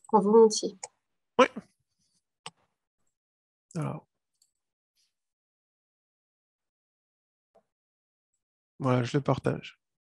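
A man speaks calmly in short bursts through an online call, with pauses between.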